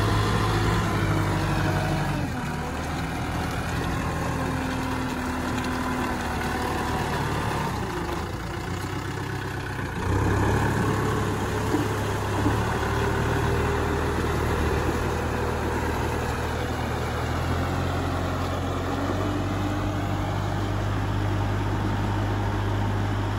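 Disc blades churn and splash through wet mud.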